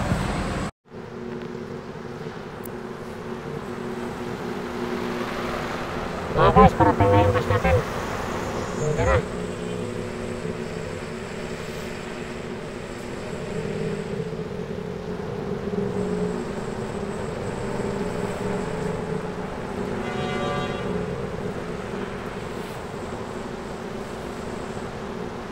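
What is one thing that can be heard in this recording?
Cars drive past on a city road.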